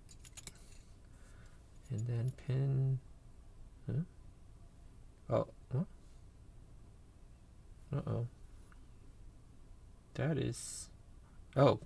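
Small metal parts click softly as they are handled.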